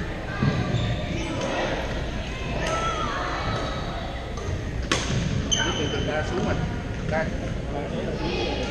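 Young men talk and call out across a large echoing hall.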